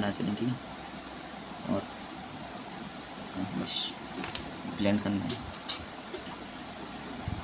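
A pencil scratches as it shades on paper.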